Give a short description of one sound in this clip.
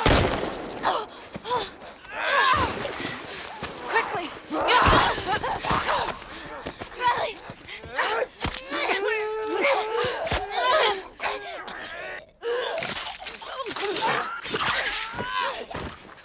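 Blows and thuds land in a struggle.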